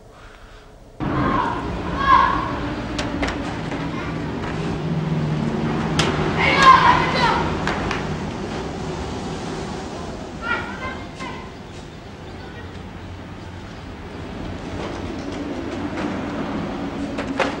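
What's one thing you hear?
Street bustle with distant voices fills the air outdoors.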